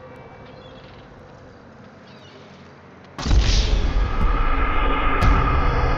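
A bird flaps its wings.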